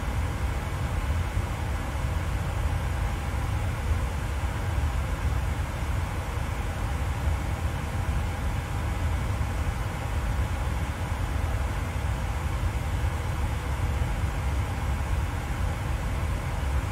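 Jet engines drone with a steady low rumble.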